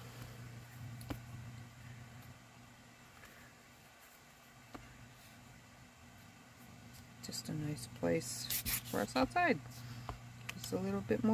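Paper rustles and slides.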